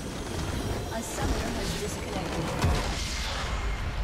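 A large crystal structure shatters with a loud burst.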